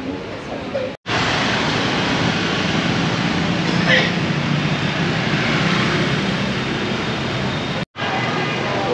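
Motorbikes and cars drive past with engines running.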